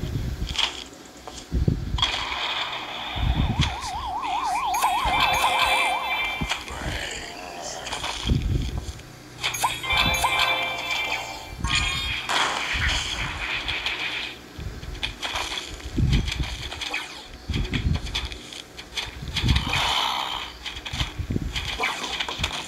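Game plants fire off soft popping shots again and again.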